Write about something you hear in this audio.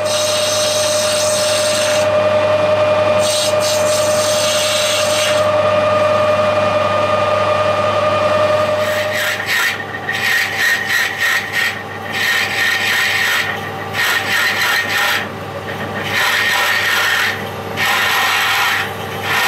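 A cutting tool scrapes and whines against turning metal.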